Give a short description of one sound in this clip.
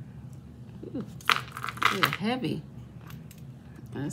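A metal bracelet is set down on a stone countertop.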